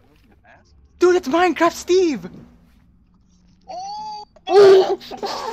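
A young man exclaims with animation, close to a microphone.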